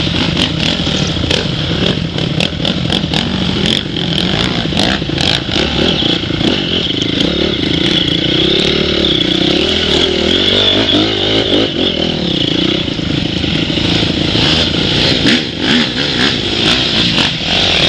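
A second dirt bike engine revs nearby as it rides over stones.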